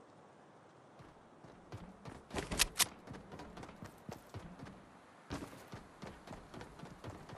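Footsteps thud quickly across a metal roof.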